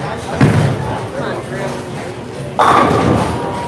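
A bowling ball rolls down a lane.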